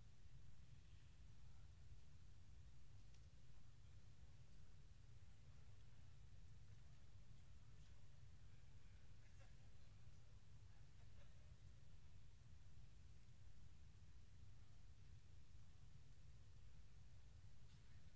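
Papers rustle faintly.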